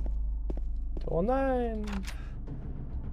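A key turns in a door lock.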